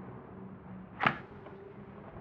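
A card taps down on a table.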